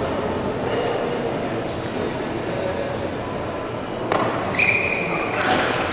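A table tennis ball clicks back and forth on bats and the table.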